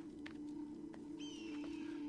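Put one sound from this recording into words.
A bird of prey cries out overhead.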